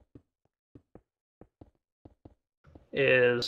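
Footsteps tap lightly on stone.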